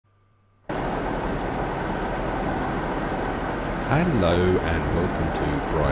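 A train engine rumbles steadily as a train approaches.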